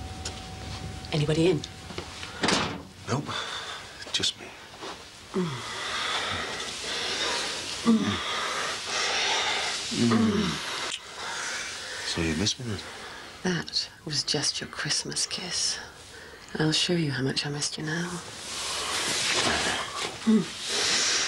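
A man speaks in a low, quiet voice, close by.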